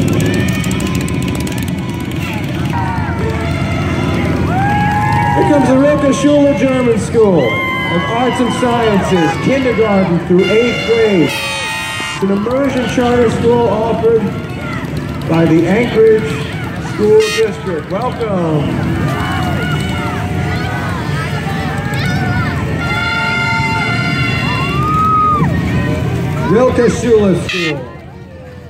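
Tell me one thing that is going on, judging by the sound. A crowd of men and women cheer and call out outdoors.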